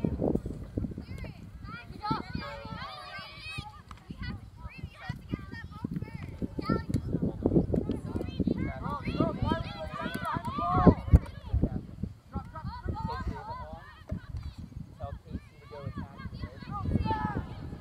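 Young girls shout and call out to each other across an open field.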